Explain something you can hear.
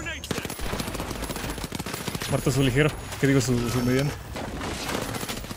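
An explosion booms in a video game.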